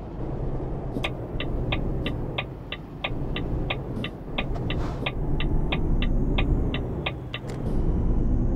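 A turn signal ticks rapidly and evenly.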